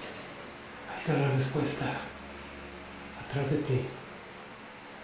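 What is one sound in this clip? A man talks softly close by.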